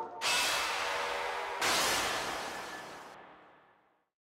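A bright game chime rings out twice and slowly fades.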